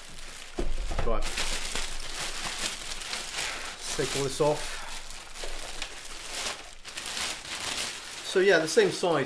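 Plastic wrap crinkles and rustles as it is pulled off.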